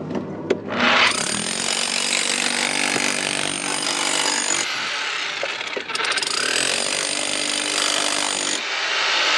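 A power drill grinds loudly into rock.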